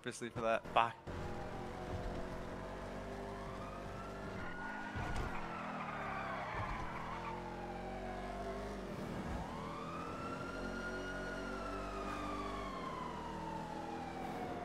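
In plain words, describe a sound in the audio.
A car engine roars at high speed, its pitch rising and falling.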